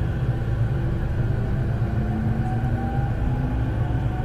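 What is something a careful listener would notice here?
The traction motors of an electric commuter train whine, rising in pitch.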